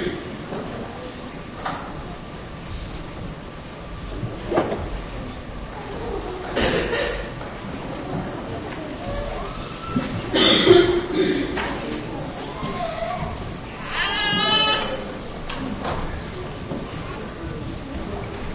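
A man speaks steadily through a microphone and loudspeakers in a large echoing hall.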